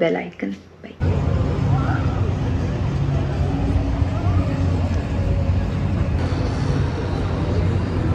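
People murmur and chatter outdoors nearby.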